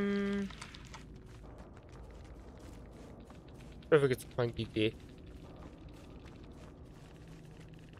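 People run through grass with quick footsteps.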